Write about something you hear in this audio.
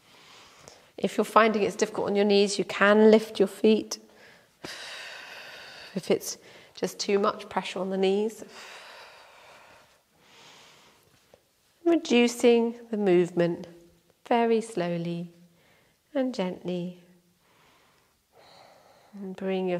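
A woman speaks calmly and slowly.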